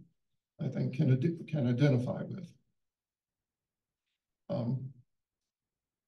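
An older man speaks calmly into a microphone.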